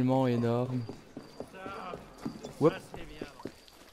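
Footsteps patter quickly on stone as someone runs.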